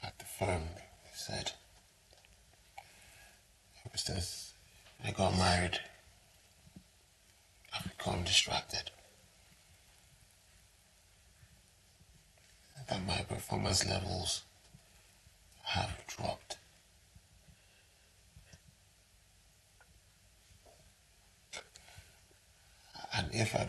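A man speaks close by in a low, upset voice, in short bursts with pauses.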